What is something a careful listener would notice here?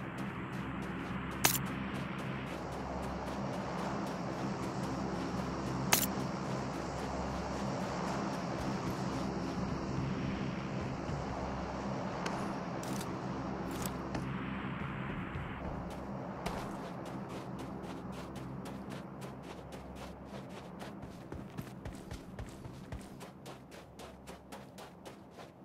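Footsteps run quickly over dry dirt.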